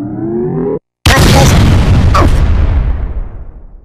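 A cartoon bat swings and lands a loud, booming whack.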